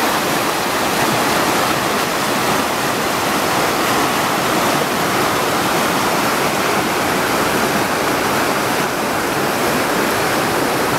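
A river rushes steadily over rocks nearby.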